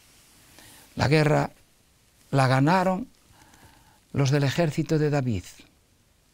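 An elderly man speaks calmly and clearly into a close microphone, in short phrases with pauses.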